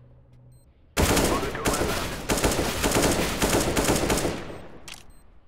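A rifle fires in rapid bursts, loud and echoing.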